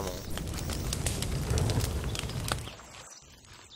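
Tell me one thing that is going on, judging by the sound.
A campfire crackles.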